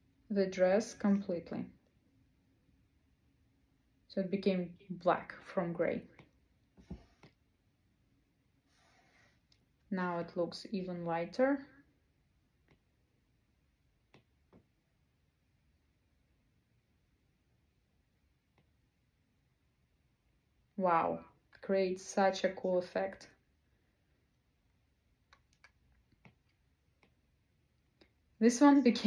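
A young woman speaks calmly and close by, in short bursts with pauses.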